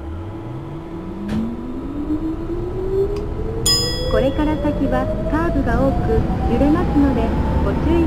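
Train wheels rumble and clatter over the rails, growing louder.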